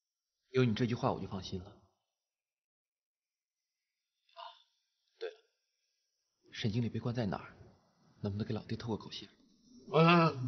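A young man speaks calmly and quietly, close by.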